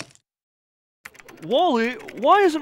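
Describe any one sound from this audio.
Fingers tap on a keyboard.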